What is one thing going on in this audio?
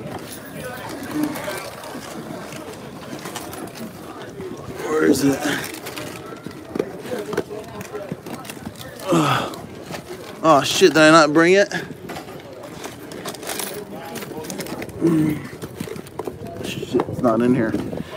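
Hands rummage through a fabric backpack with rustling.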